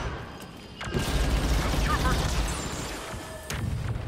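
An explosion bursts with a crackle of sparks.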